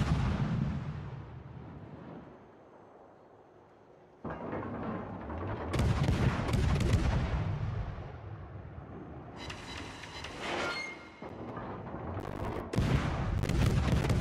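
Heavy naval guns boom in loud rolling volleys.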